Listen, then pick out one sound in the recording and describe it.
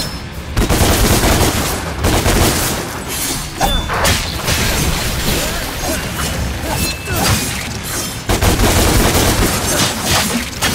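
Swords slash and clang in a fast fight.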